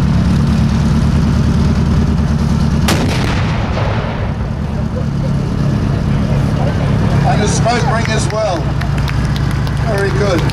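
A tank engine rumbles loudly and steadily.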